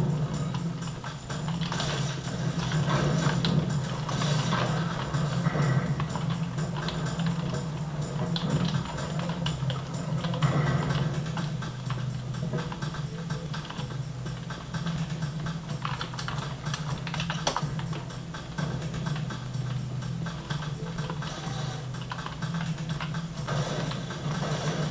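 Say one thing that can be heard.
Game gunfire and effects play from small loudspeakers.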